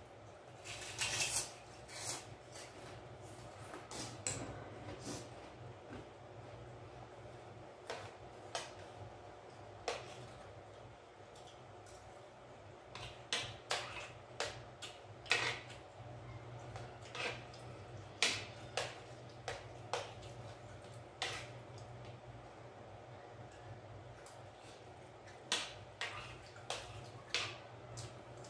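Spoons clink and scrape against plates.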